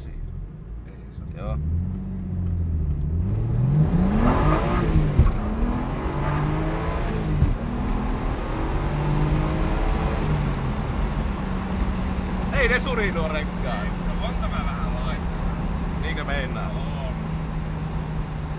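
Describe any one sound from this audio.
A car engine revs up and down through the gears, heard from inside the car.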